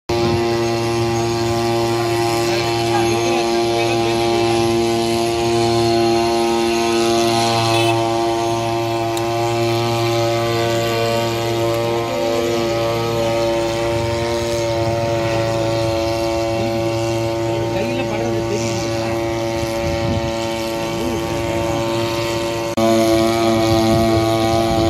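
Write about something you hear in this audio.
A drone's rotors hum steadily overhead.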